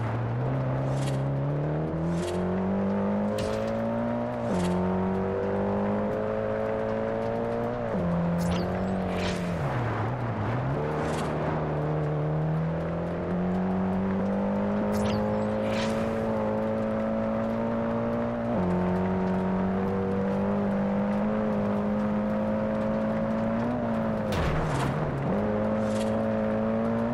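Tyres squeal in short bursts as the car slides through bends.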